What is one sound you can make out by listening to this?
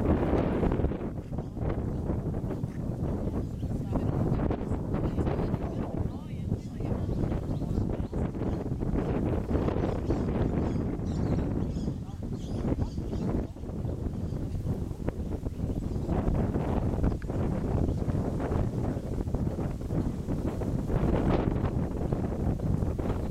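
A horse's hooves thud softly on grass at a trot.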